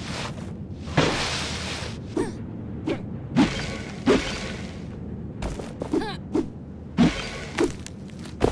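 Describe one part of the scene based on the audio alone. Hands and feet scrape and knock against rock while climbing.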